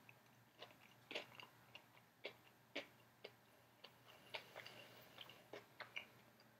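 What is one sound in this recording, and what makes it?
A man chews food close by, with wet smacking sounds.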